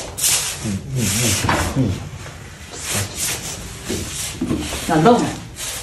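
A man speaks firmly to break up the quarrel.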